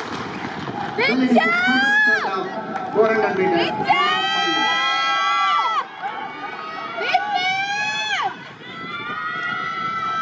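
A crowd of spectators shouts and cheers loudly.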